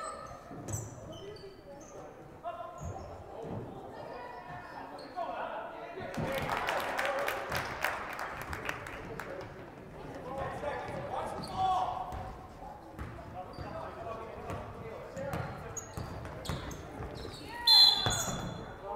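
Spectators cheer and shout in an echoing hall.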